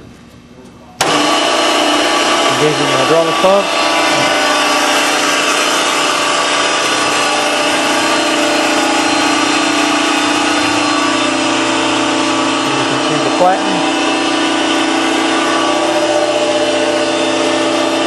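An electric motor starts and hums loudly and steadily.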